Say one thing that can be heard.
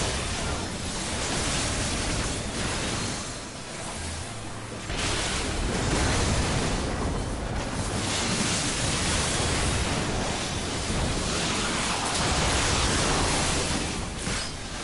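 Loud battle effects crash and whoosh.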